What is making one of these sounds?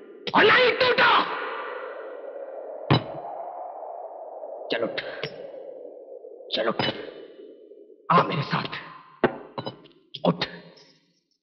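A man speaks angrily and loudly, close by, in an echoing room.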